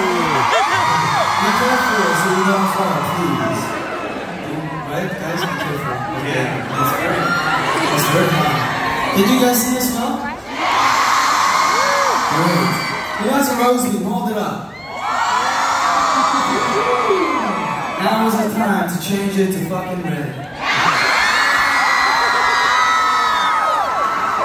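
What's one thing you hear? A young man sings into a microphone over loudspeakers in a large echoing hall.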